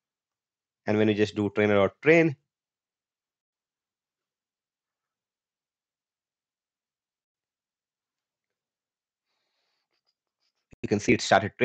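A young man speaks calmly and close to a microphone, in short bursts with long pauses.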